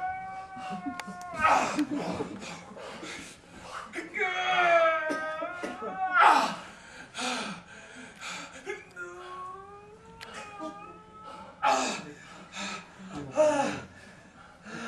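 A young man speaks and sings with strong feeling in a room with some echo.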